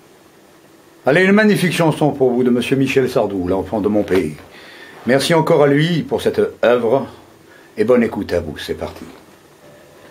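A middle-aged man speaks close by with animation.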